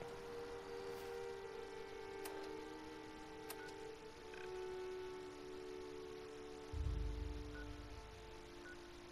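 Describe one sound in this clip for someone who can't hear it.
A handheld device clicks and beeps as its menu changes.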